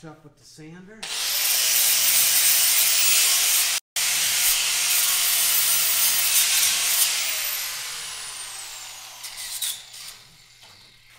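An angle grinder whines loudly as it grinds metal, then spins down.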